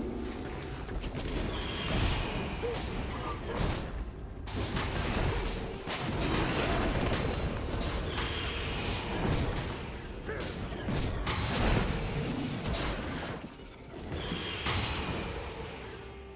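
Spell effects whoosh and crackle in a fast fight.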